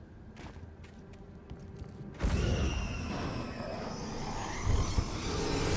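Footsteps crunch through undergrowth as a person runs.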